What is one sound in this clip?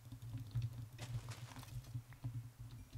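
A pig squeals as it is struck.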